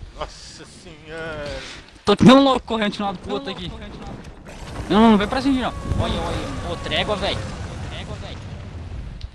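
A huge beast roars and growls loudly.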